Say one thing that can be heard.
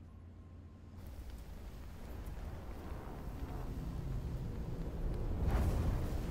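A fire roars with a rising rumble.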